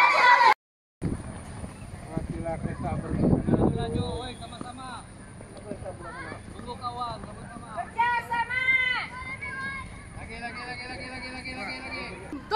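Children shout and call out in the distance outdoors.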